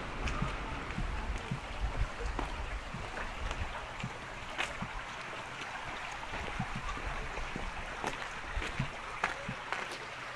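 Shallow water trickles gently along a narrow stream.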